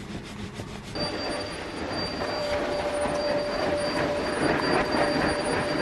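A vacuum cleaner hums and whirs steadily.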